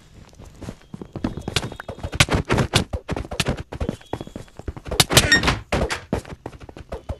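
Sword blows land in quick, loud bursts during a game fight.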